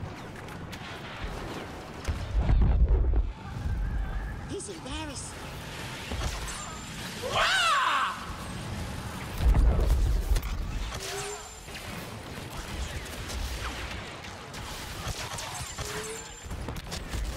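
Blaster shots zap repeatedly.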